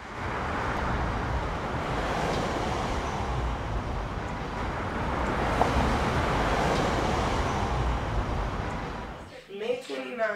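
Street traffic and city noise rumble steadily outdoors.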